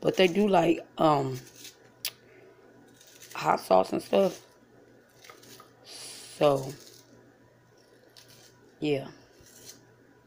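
A knife slices through an onion against a plate.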